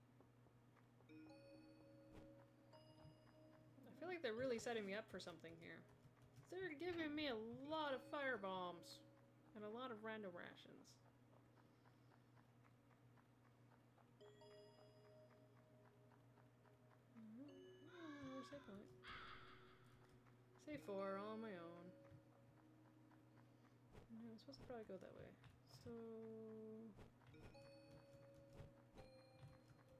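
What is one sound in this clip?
Soft game music plays with short beeping tones.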